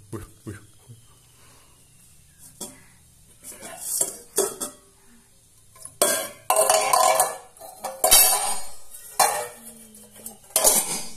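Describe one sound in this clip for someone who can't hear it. A toddler clanks stainless steel bowls and lids together on a tiled floor.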